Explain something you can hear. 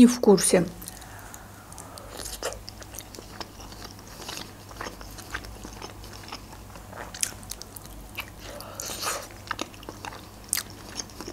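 A young woman chews food with soft wet, squishy sounds up close.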